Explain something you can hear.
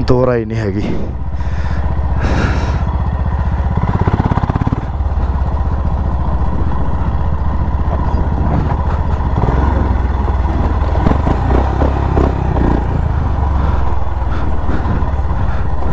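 Tyres crunch over loose gravel and stones.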